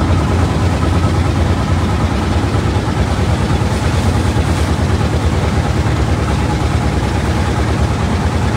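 A boat engine rumbles steadily.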